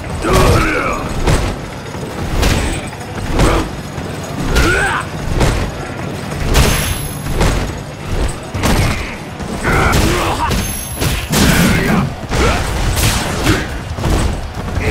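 Heavy punches and slams thud and smack again and again.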